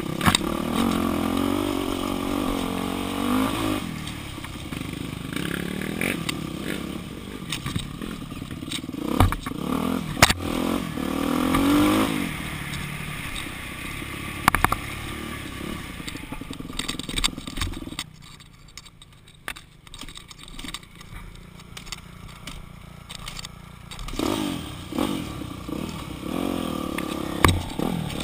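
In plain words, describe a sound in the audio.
A dirt bike engine revs and sputters close by, rising and falling in pitch.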